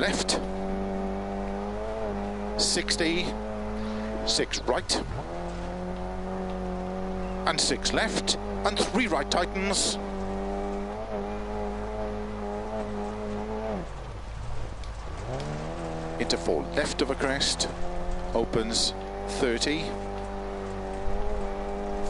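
Gravel crunches and sprays under tyres.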